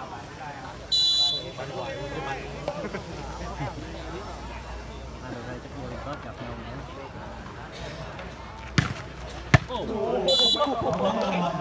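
A referee blows a whistle in short sharp blasts.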